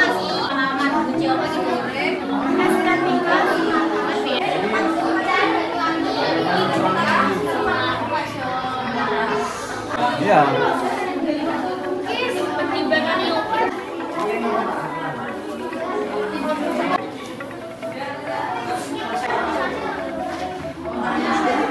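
Young teenagers chatter and talk in a hard-walled room.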